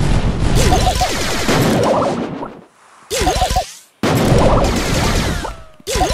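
Game weapons fire in quick bursts.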